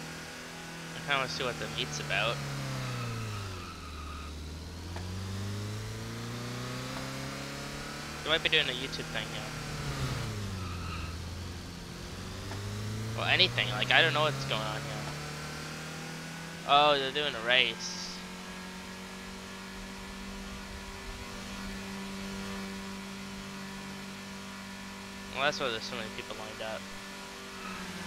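A car engine revs up and down, changing pitch as the car speeds up and slows.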